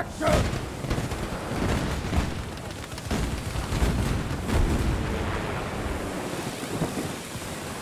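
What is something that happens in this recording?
A metal tool clangs and sparks against a tank's hull.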